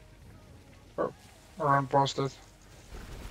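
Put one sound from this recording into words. A man exclaims briefly close to a microphone.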